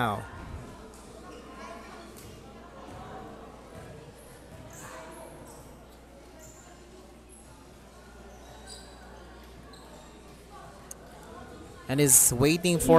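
Young people chatter quietly in the background of a large echoing hall.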